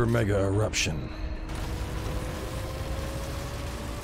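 Heavy metal doors slide open.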